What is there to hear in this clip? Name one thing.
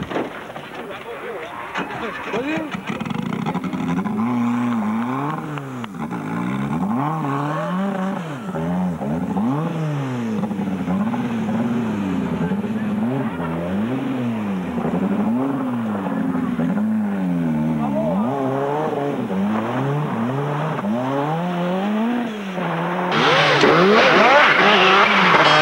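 A rally car engine revs hard, rising and falling as the car speeds along.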